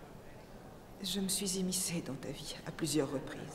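A woman speaks softly and warmly, close by.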